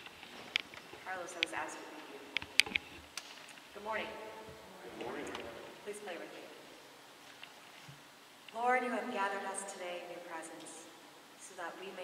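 A young woman speaks calmly into a microphone in an echoing hall.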